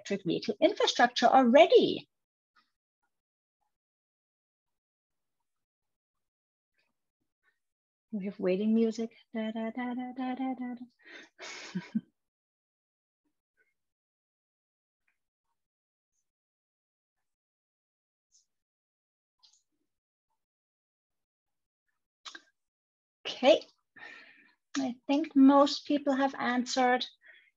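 A woman speaks calmly over an online call, in short bursts with long pauses.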